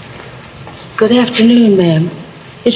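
A woman speaks warmly in an old film recording.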